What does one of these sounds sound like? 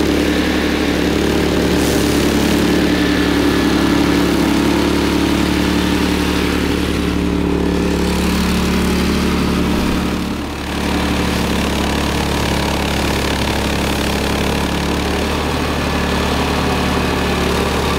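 A petrol engine drones steadily at high revs.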